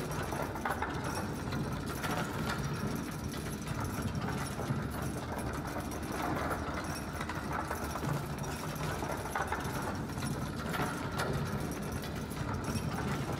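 Footsteps clank on a metal platform.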